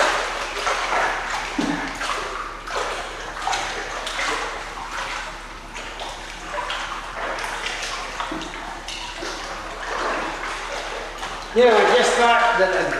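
A swimmer splashes through water with steady strokes.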